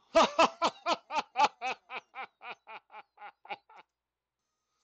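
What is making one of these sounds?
A man laughs loudly in a long, rhythmic cackle.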